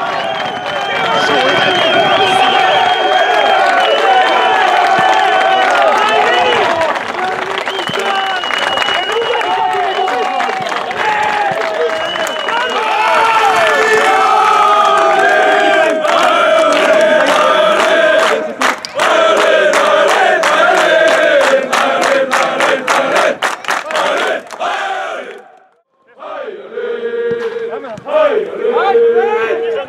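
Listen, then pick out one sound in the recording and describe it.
A large crowd of fans sings and chants loudly outdoors.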